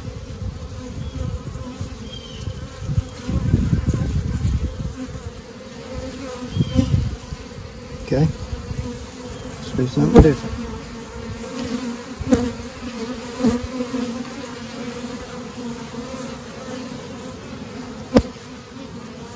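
A metal hive tool scrapes and clicks against wooden frames.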